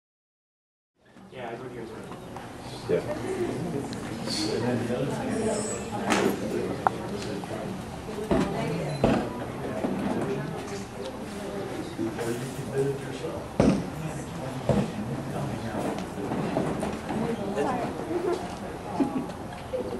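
Children chatter quietly in the background of an echoing hall.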